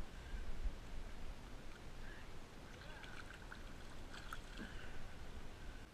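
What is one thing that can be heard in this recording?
A fish splashes and thrashes in shallow water.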